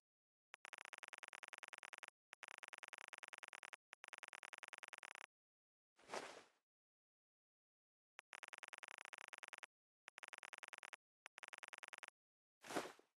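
Rapid soft clicks tick in quick bursts as a menu counter runs up and down.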